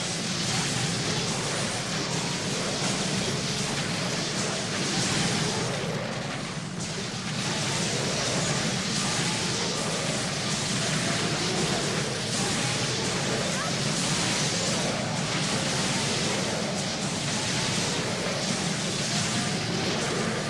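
Magic spells crackle and blast in a noisy fight.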